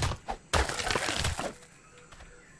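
Grass rustles as someone walks through it.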